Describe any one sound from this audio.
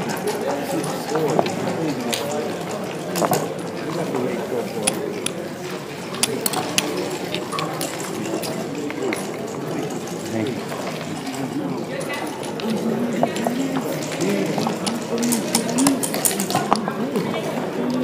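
Game pieces click and clack against a wooden board.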